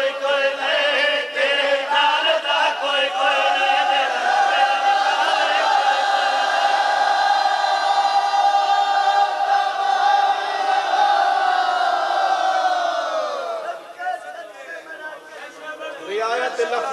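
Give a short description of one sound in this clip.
A young man sings a long, held devotional chant loudly into a microphone.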